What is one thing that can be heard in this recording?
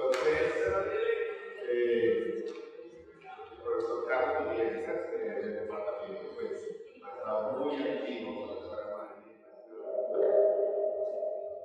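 A man speaks calmly into a microphone over loudspeakers in an echoing hall.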